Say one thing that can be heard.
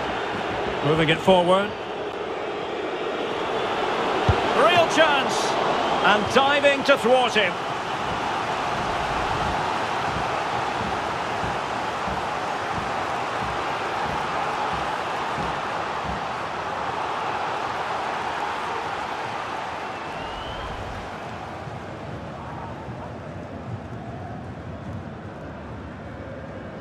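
A large crowd roars and cheers steadily in a stadium.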